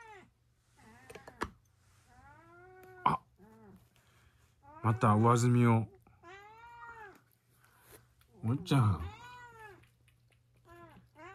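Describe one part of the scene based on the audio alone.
A cat crunches food from a bowl.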